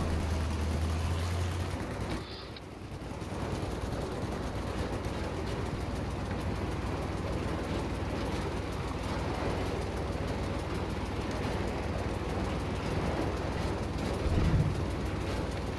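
Water splashes and rushes against a boat's bow.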